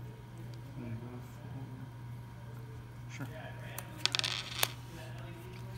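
Playing cards slide and tap on a tabletop.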